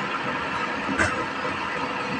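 A wooden board knocks against a lathe.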